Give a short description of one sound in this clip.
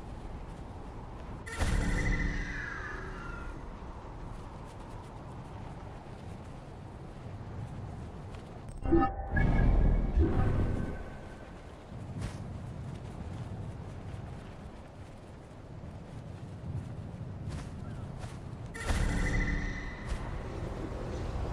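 Wind blows steadily and roars.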